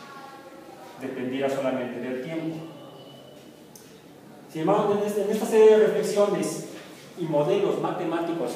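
A young man speaks calmly, close by, in a slightly echoing room.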